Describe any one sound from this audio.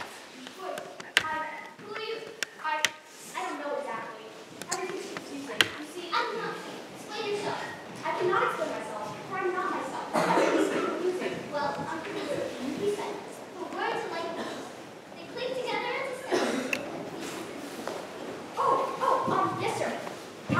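A young woman speaks loudly on a stage in a large hall.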